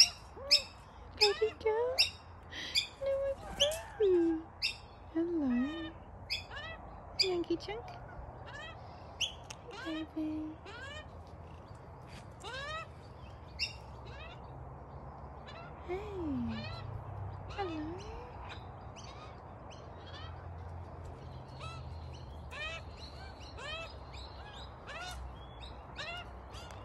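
A kookaburra chirps and chuckles close by.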